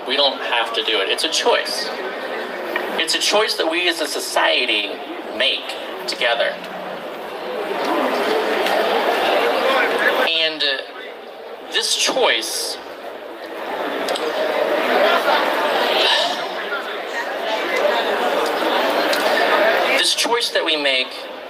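A man speaks with animation into a microphone through a loudspeaker outdoors.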